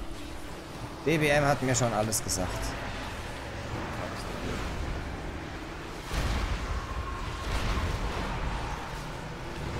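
Magic spells crackle and boom in a game battle.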